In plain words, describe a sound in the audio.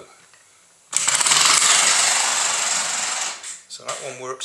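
A toy car's motor whirs loudly as it speeds away across the floor.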